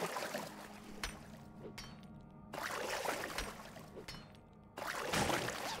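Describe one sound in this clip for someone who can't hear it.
A club strikes loose gravel and rock with dull thuds.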